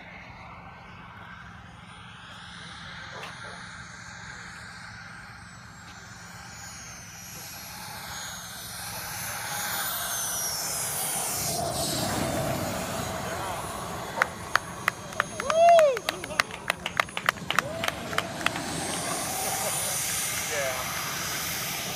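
A model jet whines as it flies past and comes in low.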